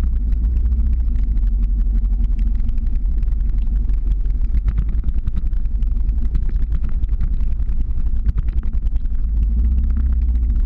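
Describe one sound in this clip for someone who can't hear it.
Skateboard wheels rumble steadily on asphalt.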